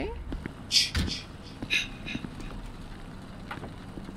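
A van door opens with a click.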